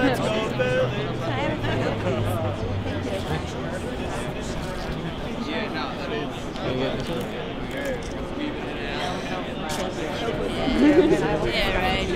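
A crowd murmurs and talks all around.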